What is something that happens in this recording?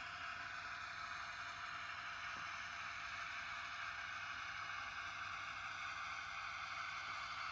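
A model train's small electric motor hums steadily as the locomotive rolls along the track.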